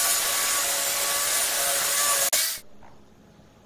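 An angle grinder screeches loudly as it cuts into metal.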